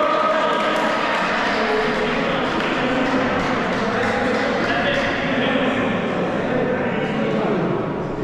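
Young people chatter and shout in a large echoing hall.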